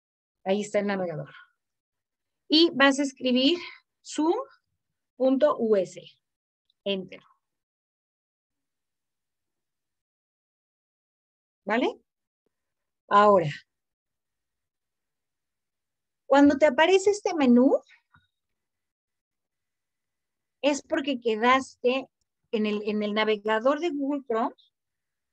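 A young woman speaks calmly through a microphone on an online call, pausing now and then.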